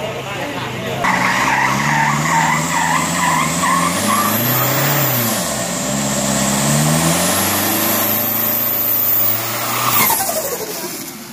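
An engine revs hard and loud.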